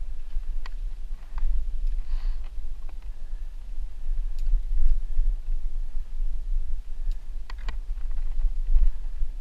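Bike tyres crunch and rattle over a dirt trail.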